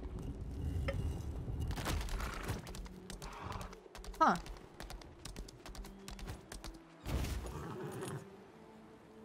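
Video game combat effects clash and whoosh.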